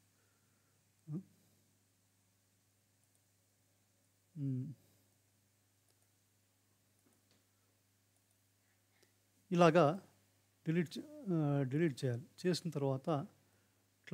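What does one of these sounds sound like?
A middle-aged man speaks calmly into a close microphone, with pauses.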